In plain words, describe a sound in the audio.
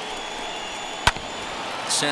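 A bat sharply cracks against a ball.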